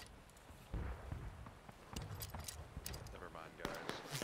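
Footsteps crunch on dirt and twigs.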